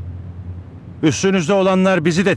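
Another man answers calmly.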